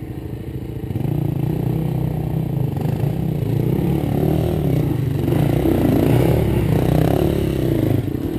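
Mountain bike tyres roll and rattle over a dirt trail.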